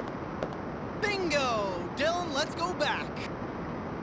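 A man calls out cheerfully, close by.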